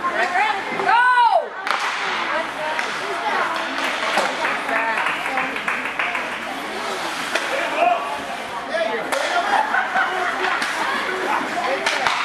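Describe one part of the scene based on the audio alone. A crowd of spectators chatters and calls out in an echoing rink.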